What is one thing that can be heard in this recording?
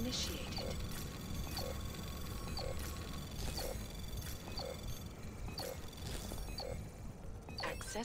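A countdown timer beeps steadily, about once a second.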